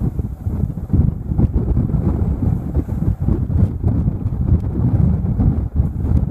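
Choppy waves splash against a boat's hull.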